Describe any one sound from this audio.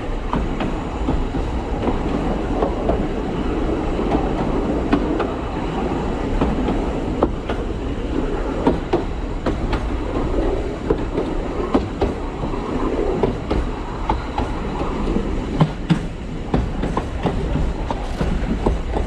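Train wheels click and clack over rail joints.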